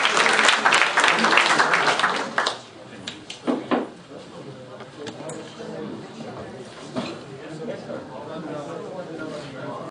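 Several people chatter and murmur in a room.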